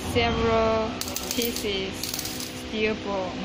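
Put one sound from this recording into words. Small steel balls clatter and rattle into a metal cup.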